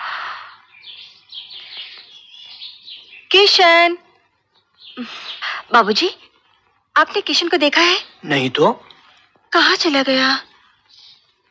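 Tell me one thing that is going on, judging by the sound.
A woman speaks quietly.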